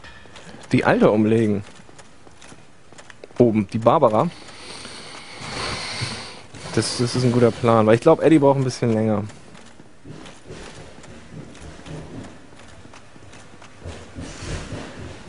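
Armoured footsteps thud on stone stairs.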